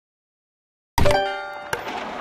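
A game piece clicks into place with a bright chime.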